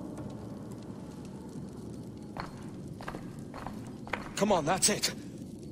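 Footsteps thud slowly on a stone floor.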